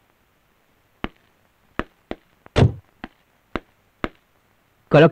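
A man stamps his boots sharply several times.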